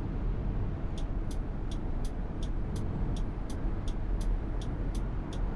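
A turn signal ticks evenly.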